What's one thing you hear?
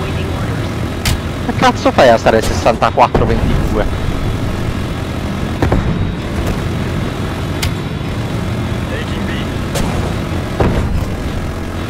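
Explosions boom on the ground.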